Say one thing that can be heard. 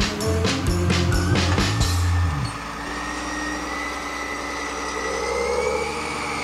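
A toy tractor's small electric motor whines steadily as it drives along.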